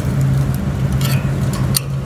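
A metal valve handle clicks as it turns.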